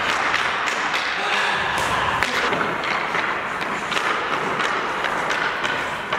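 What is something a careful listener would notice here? A hockey stick clacks against pucks on the ice.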